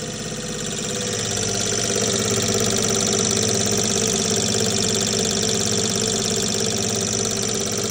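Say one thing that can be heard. A machine hums and whirs steadily.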